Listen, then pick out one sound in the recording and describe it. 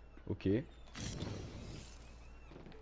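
A fire bursts into flames with a roaring whoosh.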